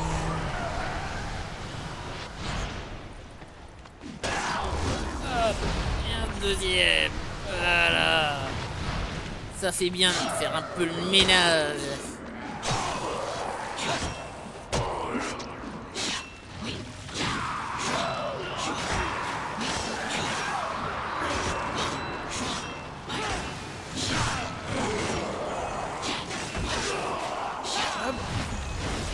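Swords clash and slash in a fierce fight.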